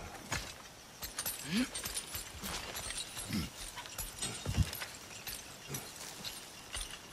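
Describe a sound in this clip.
A metal chain rattles and clinks during climbing.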